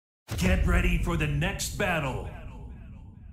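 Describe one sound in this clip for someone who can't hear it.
A man speaks loudly into a microphone, with a ringing echo.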